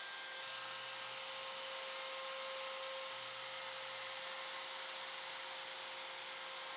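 An electric trim router whines steadily as it cuts along a wooden edge.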